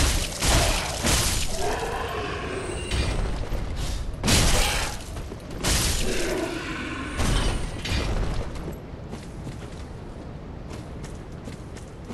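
Armour clanks with heavy footsteps.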